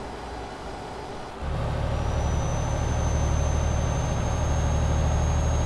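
A truck engine hums steadily, growing louder as it drives along a road.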